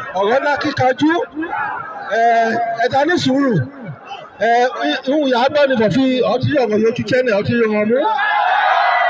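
A man speaks loudly and with animation into a microphone, heard through loudspeakers.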